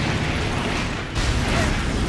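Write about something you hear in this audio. A fire bursts with a sharp blast.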